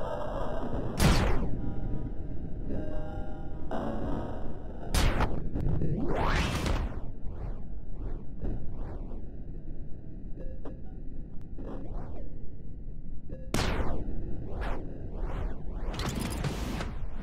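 Gunshots and explosions boom loudly.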